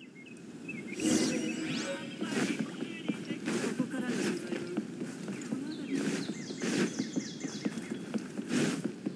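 Footsteps run across wooden planks.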